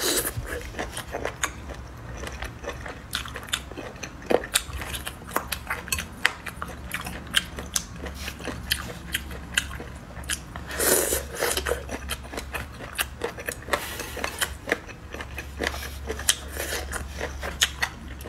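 A young woman chews food with wet, crunchy sounds close to a microphone.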